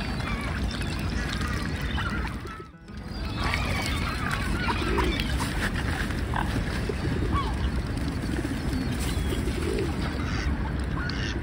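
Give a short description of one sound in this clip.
A flock of mallards quacks and calls.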